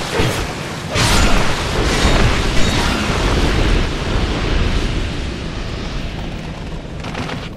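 A sword slashes and strikes flesh with heavy thuds.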